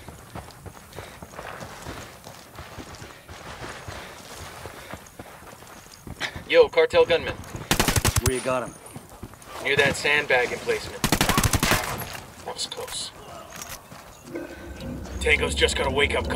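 Footsteps crunch on dirt as a man runs.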